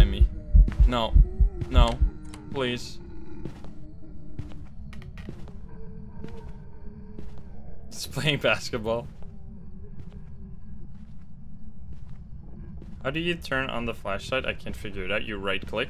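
A young man speaks into a close microphone with animation.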